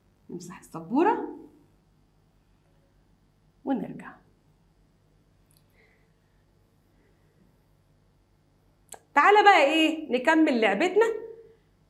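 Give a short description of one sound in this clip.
A woman speaks with animation close to a microphone, in short bursts.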